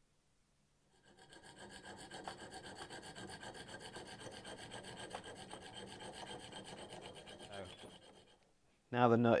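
A hacksaw cuts with quick rasping strokes.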